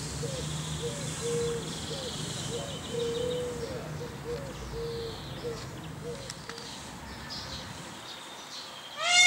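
A peacock shivers its fanned tail feathers with a soft rustling rattle.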